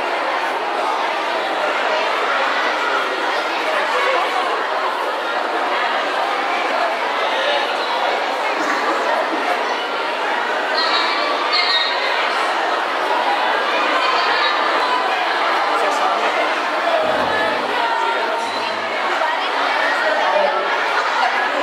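A crowd of young people chatters nearby.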